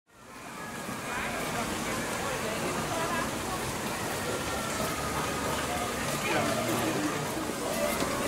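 A fountain splashes steadily.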